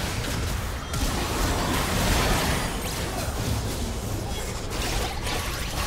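Game spell effects crackle, whoosh and boom in a busy fight.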